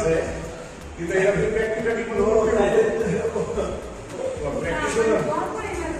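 Several men talk and call out in the background.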